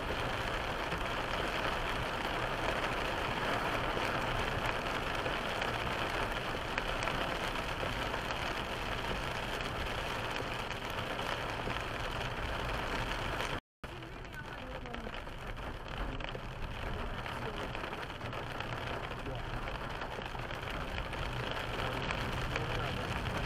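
A windscreen wiper swishes back and forth.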